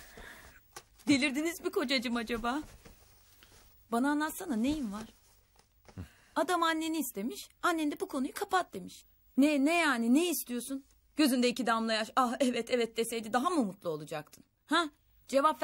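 A young woman speaks softly and closely.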